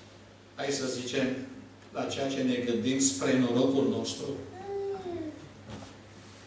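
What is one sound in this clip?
An elderly man speaks calmly into a microphone in a room with a slight echo.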